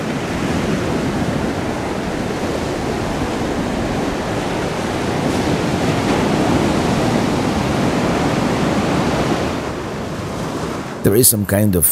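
Waves roll in and wash up onto the shore.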